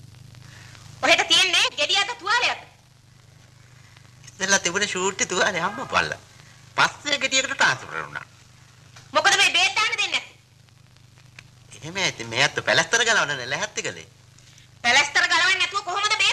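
An older man speaks loudly and with animation nearby.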